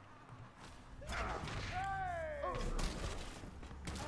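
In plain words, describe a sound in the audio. Armoured players crash into each other with a heavy thud.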